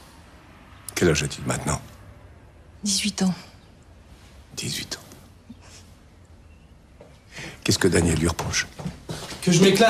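An older man speaks calmly, close by.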